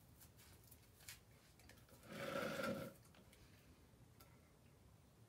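A metal paint can knocks and clinks against the floor.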